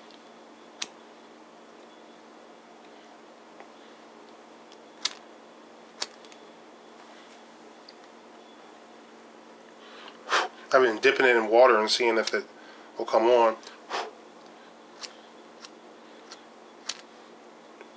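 A lighter clicks sharply as it is flicked several times.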